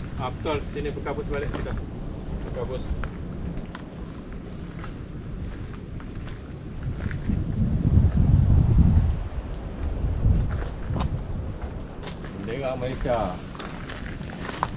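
Rain patters steadily on leaves and the ground.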